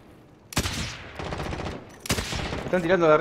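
A rifle fires two loud shots that echo.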